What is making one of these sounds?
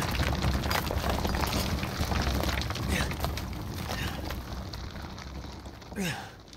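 Rocks crash and rumble as a rock pile collapses.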